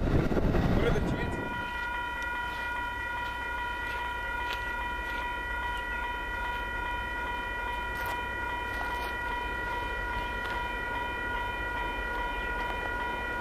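A train horn blares a long, steady chord from a distance.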